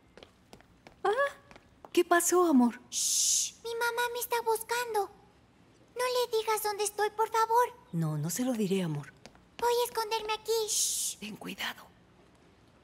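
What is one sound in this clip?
An older woman speaks with animation, nearby.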